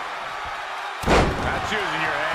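A heavy body slams onto a mat with a loud thud.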